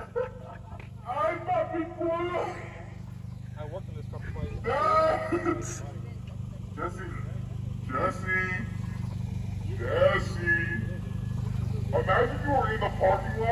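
A young man talks with animation nearby.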